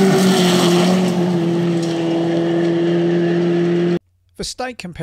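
A rally car engine roars at high revs.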